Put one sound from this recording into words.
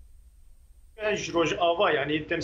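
A young man speaks calmly and clearly into a microphone.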